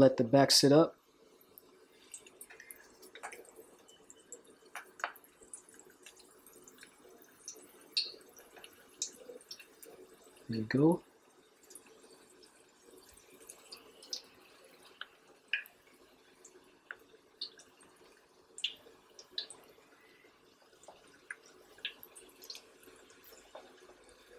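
Hot oil sizzles and crackles as food fries.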